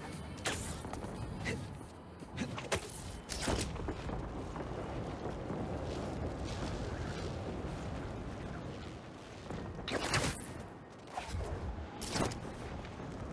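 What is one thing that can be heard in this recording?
Web lines shoot out with sharp zips.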